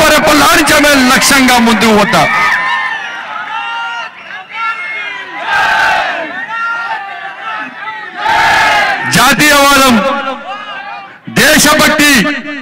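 A middle-aged man speaks forcefully into a microphone over loudspeakers, his voice echoing.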